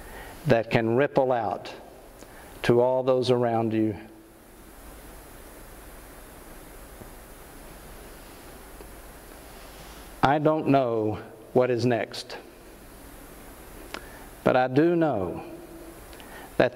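An older man speaks calmly and slowly into a microphone, with pauses between phrases.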